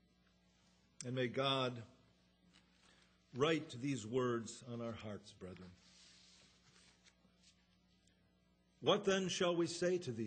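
A man speaks with animation into a microphone, with pauses between phrases.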